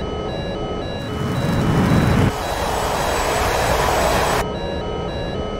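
A jet engine roars loudly during takeoff.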